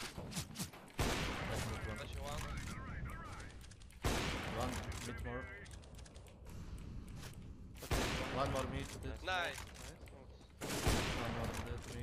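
A sniper rifle fires loud single shots that echo.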